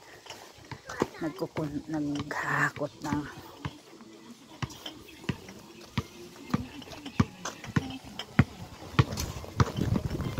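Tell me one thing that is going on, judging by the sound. A ball bounces on concrete.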